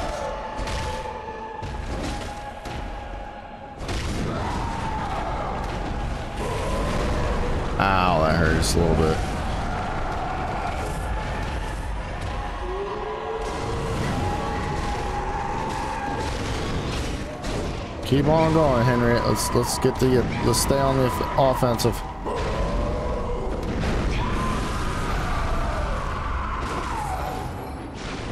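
Blades slash and strike with sharp hits.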